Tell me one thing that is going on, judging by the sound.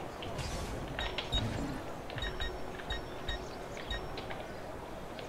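Soft electronic menu blips sound as a selection moves through a list.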